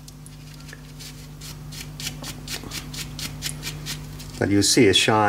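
Steel wool scrapes against a metal nail in quick, rough strokes.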